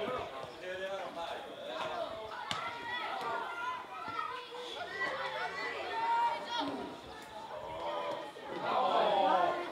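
Young players shout to each other outdoors, from some distance away.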